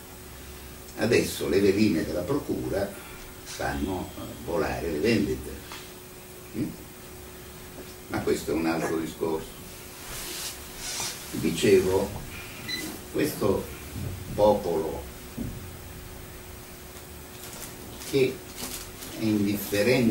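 A middle-aged man speaks calmly in a small, quiet room, pausing between phrases.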